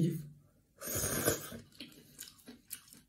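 A man slurps noodles.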